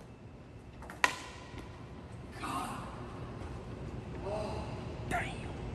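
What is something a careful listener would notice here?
Footsteps tap on stone stairs, echoing in a large hall.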